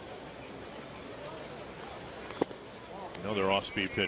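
A baseball pops into a catcher's mitt.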